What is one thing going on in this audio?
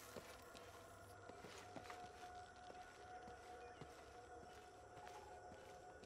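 Footsteps scuff softly over stone and loose rubble.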